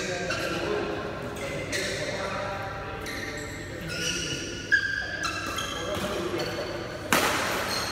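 Sports shoes squeak sharply on a hard court floor in a large echoing hall.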